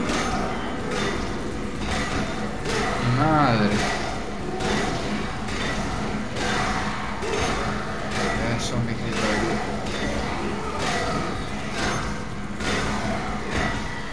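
Blows thud into zombies in quick succession.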